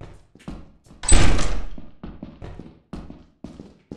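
A heavy door bangs open.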